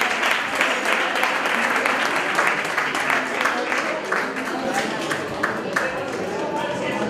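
An audience claps loudly in an echoing hall.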